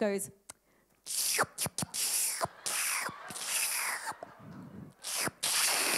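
A young woman makes sharp breathy hissing sounds into a microphone.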